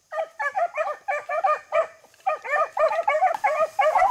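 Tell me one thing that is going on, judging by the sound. A bird chirps rapidly and repeatedly close by.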